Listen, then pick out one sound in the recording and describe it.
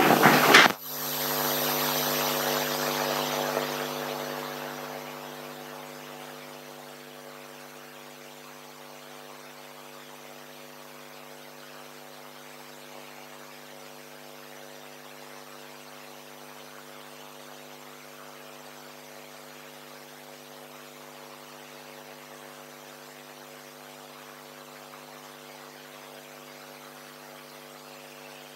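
A television speaker gives off a steady low electrical hum.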